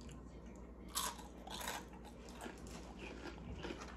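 A young woman chews with wet mouth sounds close to the microphone.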